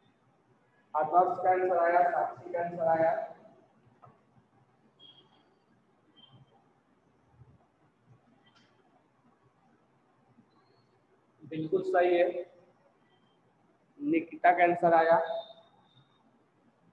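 A man speaks in short lecturing phrases.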